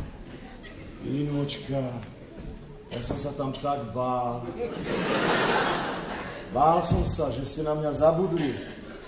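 A man speaks loudly on a stage in a large hall.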